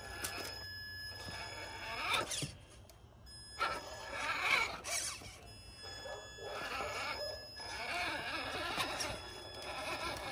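Knobbly toy tyres scrape and clatter over logs and rocks.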